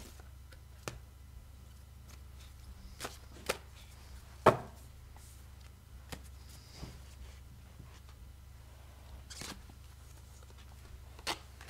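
Cards tap and click as they are shuffled by hand.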